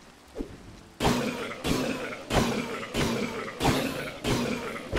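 A sword swings and strikes again and again in quick rhythm.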